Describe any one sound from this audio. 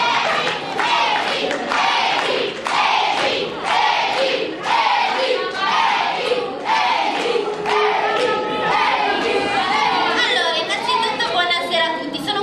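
A woman declaims dramatically into a microphone, heard through loudspeakers.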